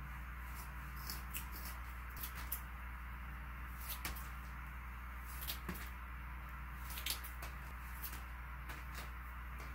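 Scissors snip through a soft sponge.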